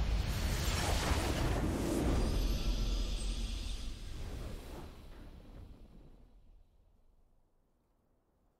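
A triumphant game victory fanfare booms and slowly fades away.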